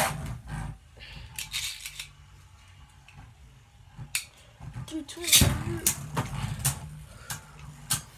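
A spinning top whirs steadily in a plastic dish.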